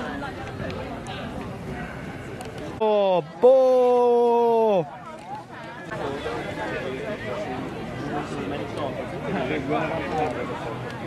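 A crowd chatters in the distance.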